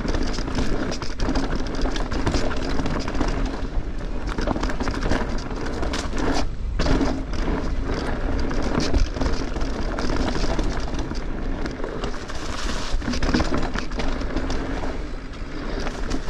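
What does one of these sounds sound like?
A bicycle rattles over bumps.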